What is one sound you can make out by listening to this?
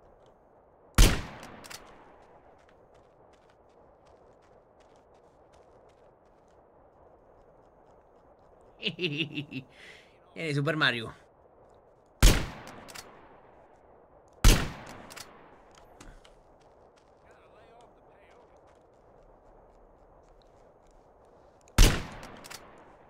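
Loud rifle shots crack, each followed by a short echo.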